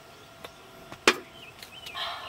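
A metal can knocks down onto a wooden table.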